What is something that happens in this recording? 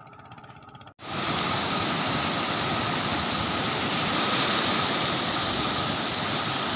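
Water rushes loudly through open sluice gates and churns below.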